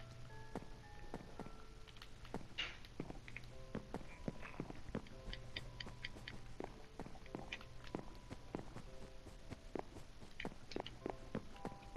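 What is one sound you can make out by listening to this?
Footsteps tap steadily on a wooden floor.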